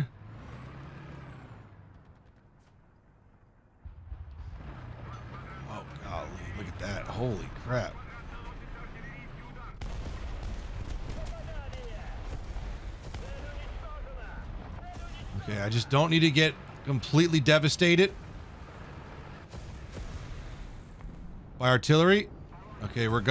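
A tank's gun fires in loud bursts.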